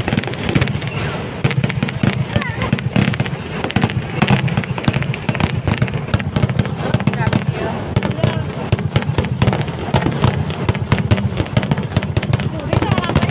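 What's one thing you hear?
Fireworks crackle and pop rapidly overhead.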